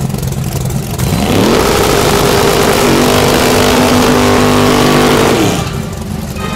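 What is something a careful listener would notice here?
A car engine revs up hard and roars loudly.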